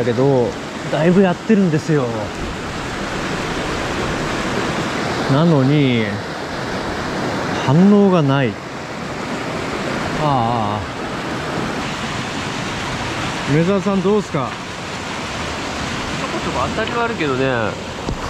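A young man talks calmly and close by.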